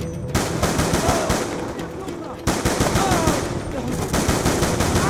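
Rapid gunfire bursts ring out loudly.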